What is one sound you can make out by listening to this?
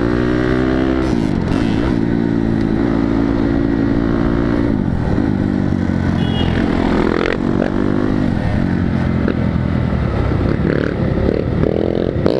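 Other motorcycles buzz nearby.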